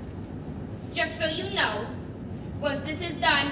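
A woman speaks with emotion, heard from a distance in a large room.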